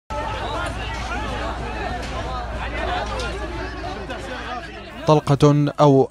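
A crowd of men talks and shouts all around outdoors.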